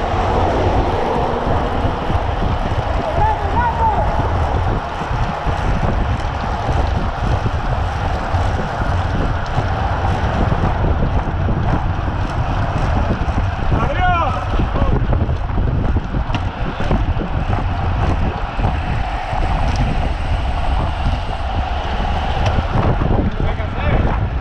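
Bicycle wheels hum on the road.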